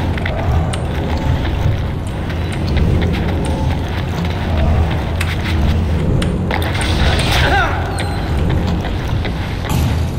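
Footsteps patter on stone as a runner climbs and leaps.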